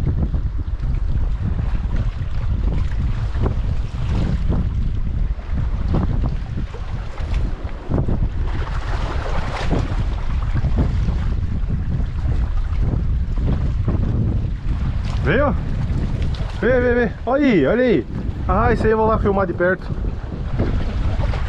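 Strong wind rumbles against the microphone outdoors.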